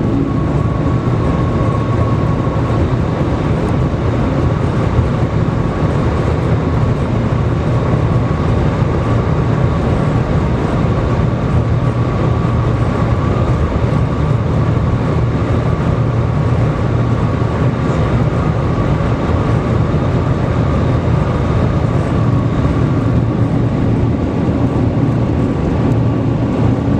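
A high-speed train rumbles and roars steadily inside its cabin.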